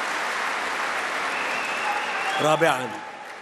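A large crowd applauds.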